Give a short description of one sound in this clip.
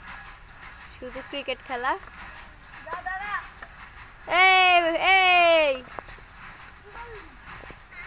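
Young children call out and shout nearby outdoors.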